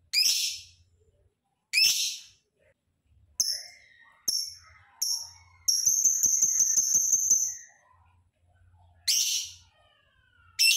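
A small parrot chirps loudly in sharp, shrill bursts.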